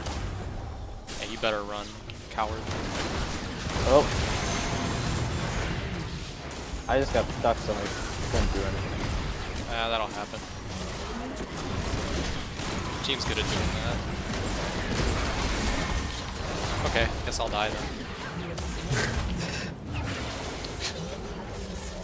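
Magic spell effects whoosh and crackle as fighters clash.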